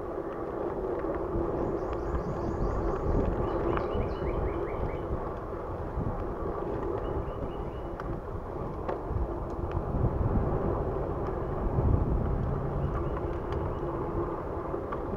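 Wind buffets past, loud and steady, as the rider moves along.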